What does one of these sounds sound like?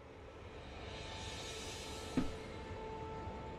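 A magic shimmer sparkles and hisses softly.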